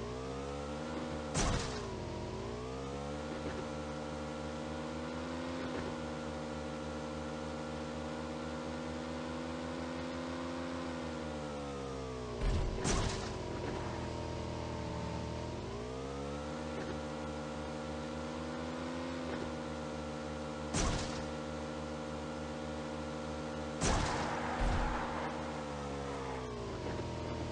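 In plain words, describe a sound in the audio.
A motorcycle engine drones steadily, its pitch rising and falling as it speeds up and slows down.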